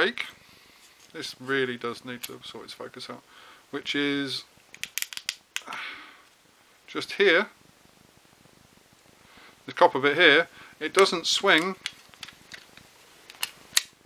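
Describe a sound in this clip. Small plastic parts click and rattle as they are handled.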